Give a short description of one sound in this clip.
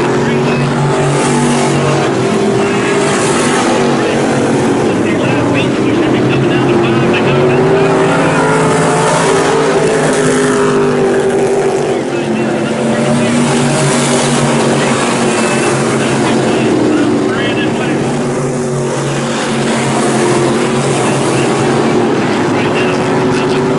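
Race car engines rise and fall in pitch as cars pass by.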